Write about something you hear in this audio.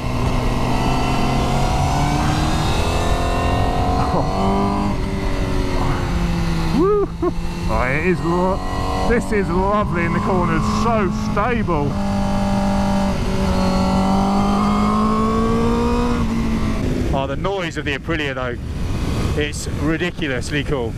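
A motorcycle engine roars, revving up and dropping through gear changes.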